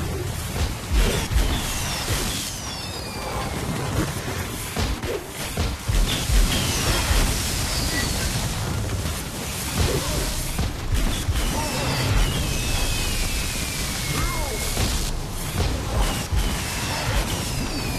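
Spell effects boom and crackle in rapid bursts.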